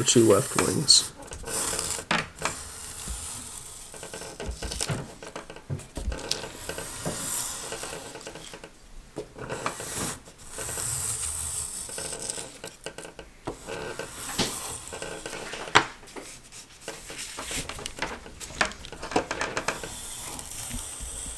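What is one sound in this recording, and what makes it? A small hand plane scrapes along thin wood in short strokes.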